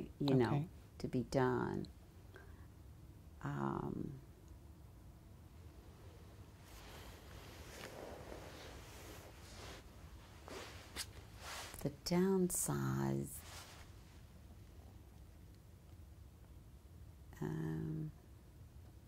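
An elderly woman speaks calmly in short phrases, close to a microphone.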